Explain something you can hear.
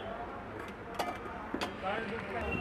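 A plastic cup knocks lightly against a tabletop.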